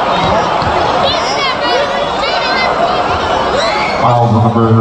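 Basketball shoes squeak sharply on a hardwood court.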